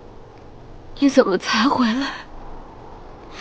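A young woman speaks softly, close by, in a tearful voice.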